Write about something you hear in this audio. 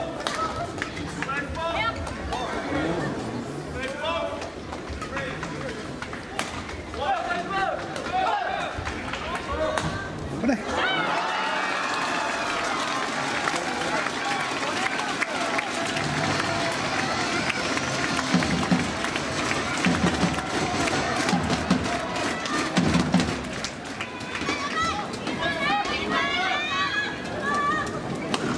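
A large crowd chatters and cheers in a big echoing hall.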